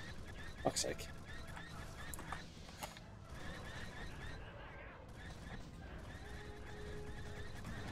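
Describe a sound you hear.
A lightsaber hums and swishes through the air.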